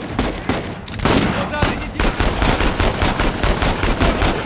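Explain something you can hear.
Enemy gunfire rattles from across the cave.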